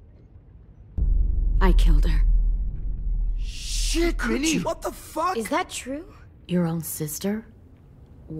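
A young woman speaks in a strained, emotional voice, close by.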